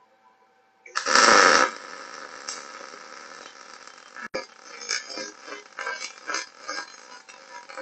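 A welding arc crackles and sizzles steadily.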